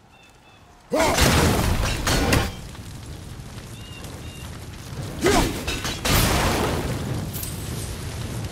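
A burst of fire roars and crackles.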